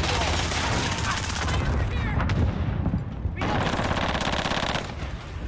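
An automatic rifle fires rapid bursts of loud shots.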